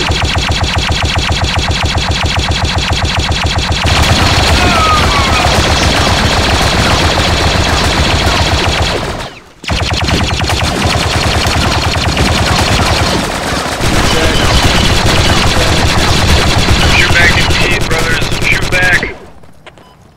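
A machine gun fires in rapid, steady bursts.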